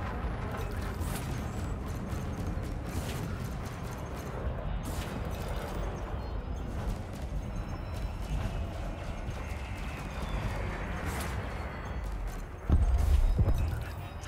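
Laser fire zaps in short bursts.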